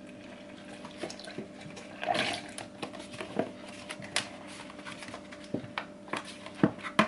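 A plastic blender lid clicks and knocks as it is fitted.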